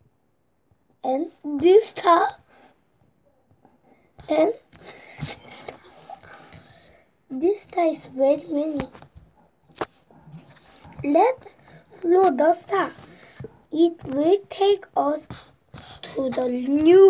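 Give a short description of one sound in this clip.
A young boy reads aloud with animation, close to a microphone.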